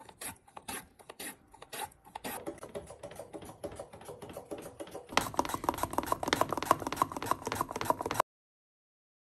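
A vegetable slicer scrapes rhythmically through firm vegetables.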